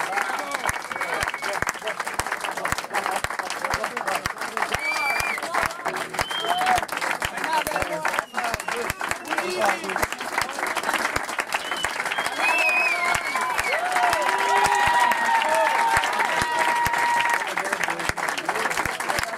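A crowd applauds loudly in a small room.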